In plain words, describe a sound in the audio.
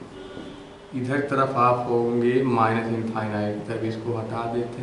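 A man speaks clearly and steadily close by.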